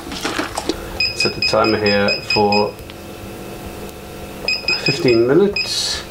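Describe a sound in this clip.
An electronic control panel beeps in quick short tones.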